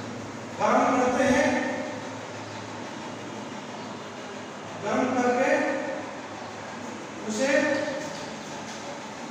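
A man speaks in short bursts.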